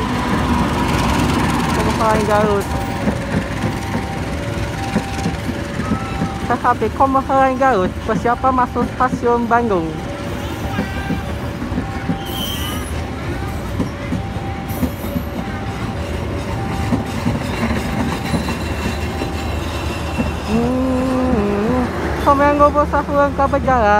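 A train rolls past close by with a steady, heavy rumble.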